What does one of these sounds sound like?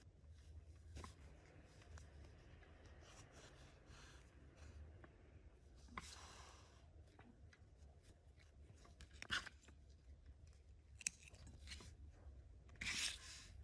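Yarn rustles and rubs against a crocheted piece as it is handled.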